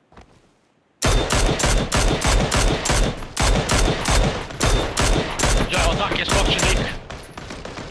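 A rifle fires rapid shots, one after another.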